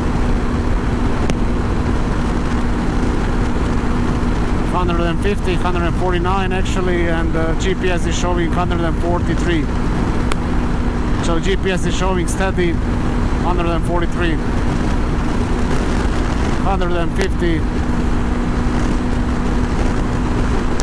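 A motorcycle engine hums steadily at high speed.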